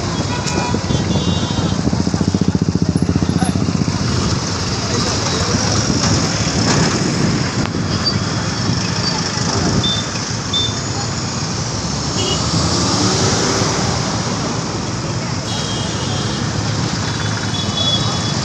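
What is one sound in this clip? Vehicle horns honk now and then.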